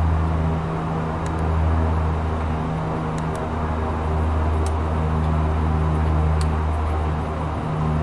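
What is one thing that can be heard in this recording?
Jet engines hum steadily.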